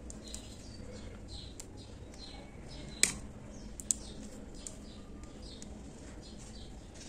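A crochet hook softly scrapes and pulls through yarn, close by.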